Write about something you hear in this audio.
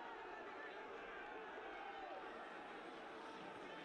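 Young men shout and cheer in celebration outdoors.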